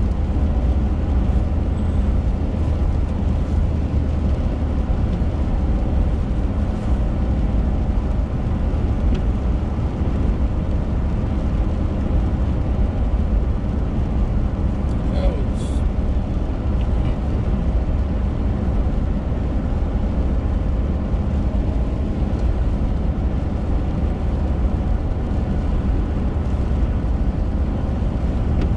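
A car engine hums and tyres roar steadily on a wet road.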